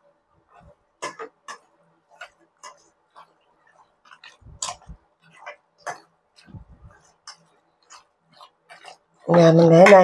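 Hands squish and knead raw meat in a metal bowl.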